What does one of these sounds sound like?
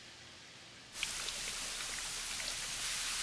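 Rain patters steadily on wet pavement.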